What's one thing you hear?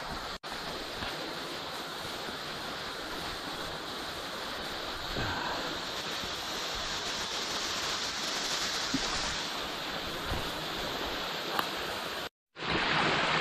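Dry leaves crunch underfoot as someone walks downhill.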